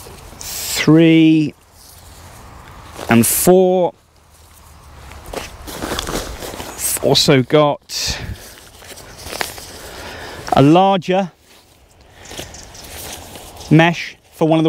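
Fabric rustles and crinkles as it is handled.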